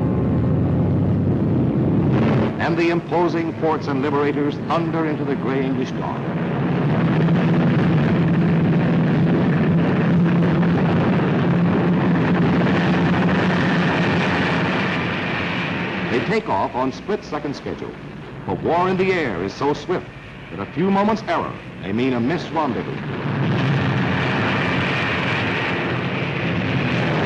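Several propeller engines roar steadily.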